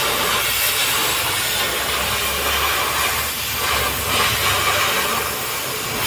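A cutting torch roars and hisses steadily as it burns through steel.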